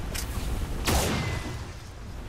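Energy weapons fire in sharp bursts.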